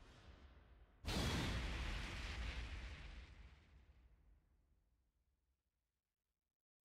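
A heavy boom hits with a whoosh and rumbles away.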